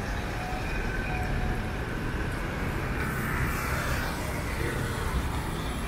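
A car engine hums as the car drives by slowly.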